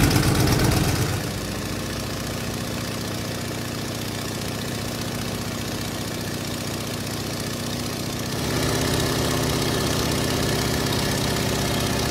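A small propeller plane engine drones steadily.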